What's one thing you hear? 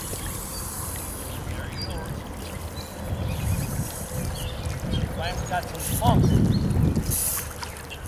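Water splashes softly around a man wading in a river.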